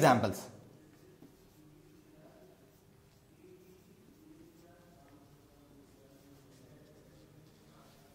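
A marker squeaks faintly as it writes on a whiteboard.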